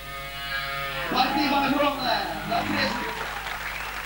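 A rock band plays loudly with electric guitars and drums.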